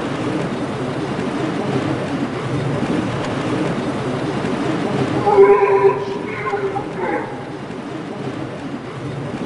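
Something grinds steadily along a metal rail with a crackling hiss.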